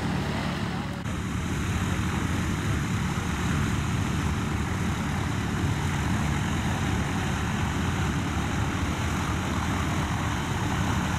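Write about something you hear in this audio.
A propeller plane's engine hums steadily close by as it taxis.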